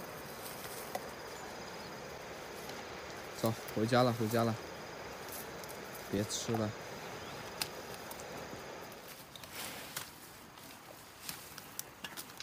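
A water buffalo tears and chews leafy branches up close.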